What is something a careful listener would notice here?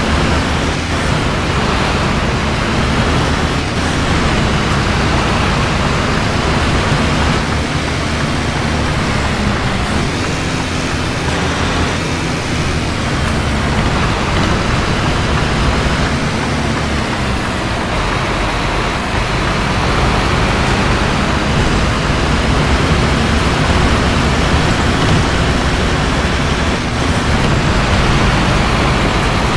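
Rain patters on the windows.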